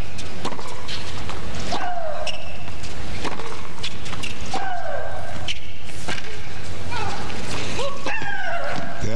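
A tennis ball is struck with sharp thwacks back and forth.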